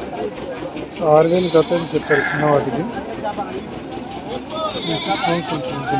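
Sheep bleat close by.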